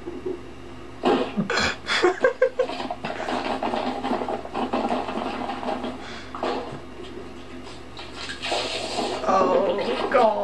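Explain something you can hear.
A young man laughs and giggles, close by.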